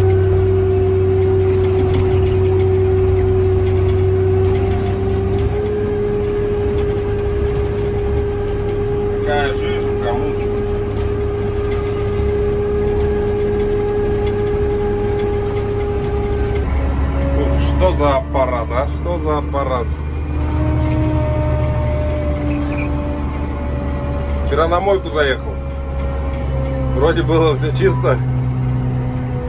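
A motor grader's diesel engine runs, heard from inside the cab.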